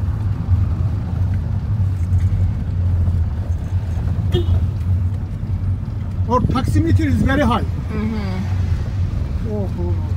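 A car engine hums with a low, steady rumble as the car drives.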